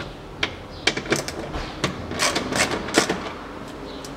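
A metal tool scrapes and clicks against a car door panel.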